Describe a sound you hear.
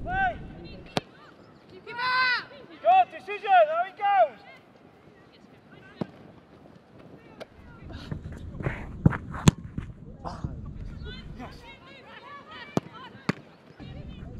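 A football is kicked with sharp thuds.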